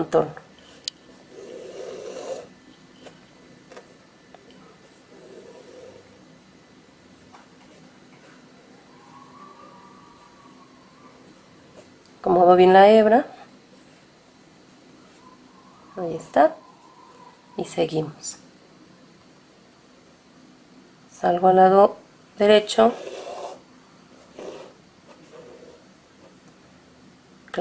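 A needle and thread rasp softly as the thread is pulled through taut fabric.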